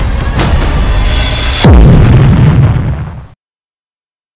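A loud explosion roars and rumbles.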